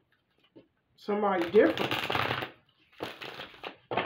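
Playing cards riffle and flutter as they are shuffled.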